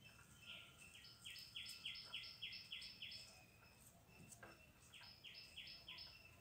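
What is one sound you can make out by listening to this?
Dry straw rustles softly under busy fingers.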